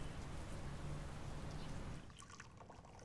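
Tea pours from a ceramic teapot into a cup.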